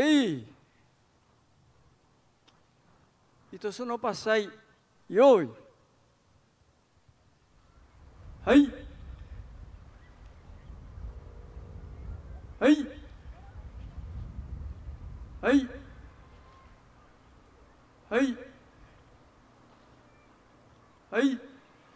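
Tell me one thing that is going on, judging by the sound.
A group of older men shouts sharply in unison, again and again, outdoors.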